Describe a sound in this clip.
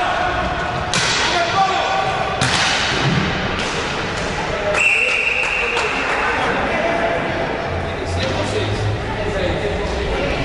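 Roller skate wheels rumble across a wooden floor in a large echoing hall.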